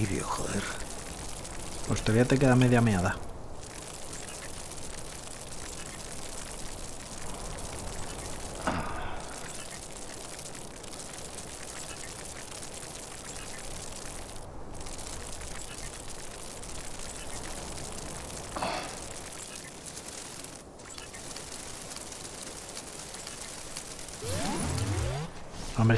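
Wind blows steadily across open ground.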